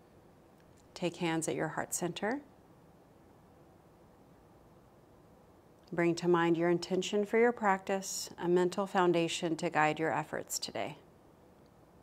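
A young woman speaks calmly and softly into a close microphone.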